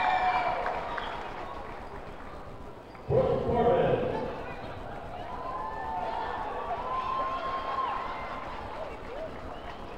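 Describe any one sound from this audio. Young women chatter and laugh close by.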